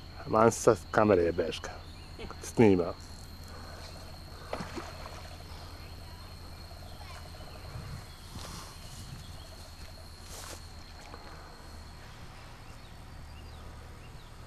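A fishing reel clicks as it is wound in.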